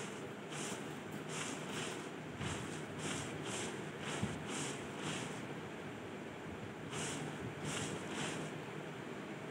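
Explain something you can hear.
A figure crawls through tall grass, rustling in short rhythmic bursts.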